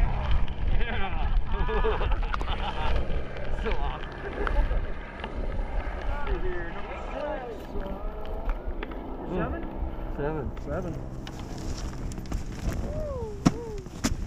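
Ski gear clatters and scrapes on snow.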